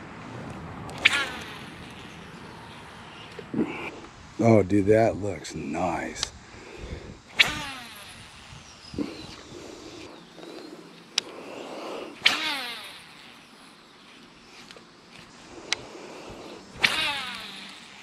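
A fishing rod swishes sharply through the air on each cast.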